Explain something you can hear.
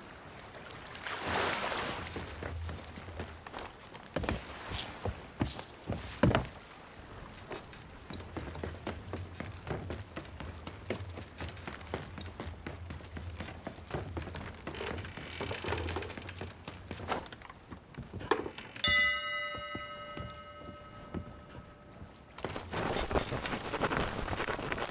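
Footsteps thud on wooden rungs as a ladder is climbed.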